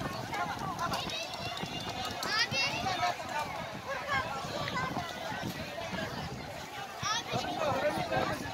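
Children shout and call out nearby.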